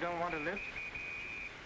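A man speaks briefly and cheerfully nearby.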